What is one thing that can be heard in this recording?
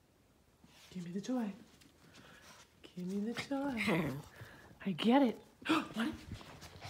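A small dog whines in rising and falling tones.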